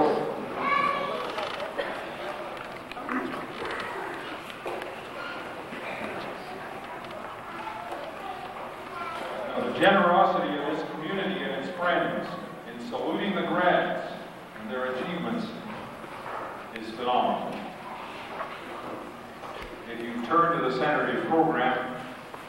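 An elderly man speaks calmly into a microphone over loudspeakers in a large echoing hall.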